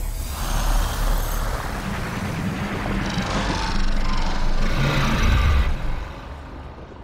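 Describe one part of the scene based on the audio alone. Magical energy crackles and hisses loudly.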